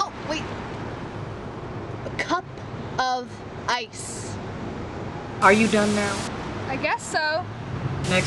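A young woman exclaims in surprise.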